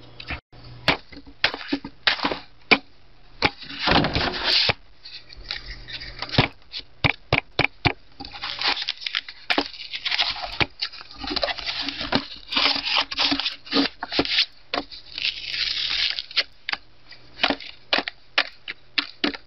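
A knife blade scrapes and cuts into a book's cover.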